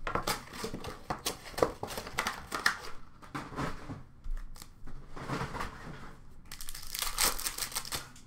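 Foil trading card packs crinkle and tear as they are ripped open.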